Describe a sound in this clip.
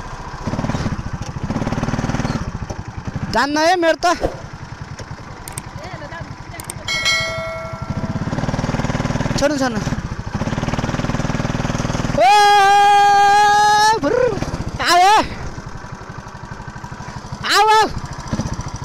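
A small kart engine buzzes and revs up close.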